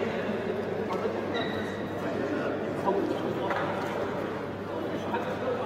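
A man talks urgently to a group up close.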